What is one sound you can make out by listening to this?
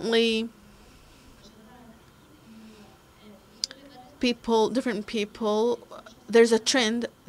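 A woman speaks calmly to an audience.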